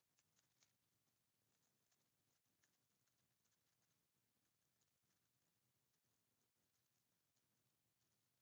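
Paper crinkles and rustles as hands fold and press it.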